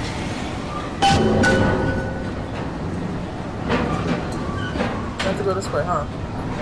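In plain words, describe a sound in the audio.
A metal hook grinds and rattles along a rail.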